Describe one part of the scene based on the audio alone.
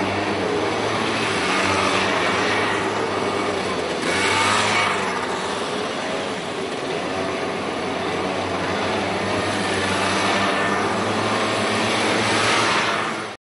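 Scooter engines rev up close by, then fade as they pass.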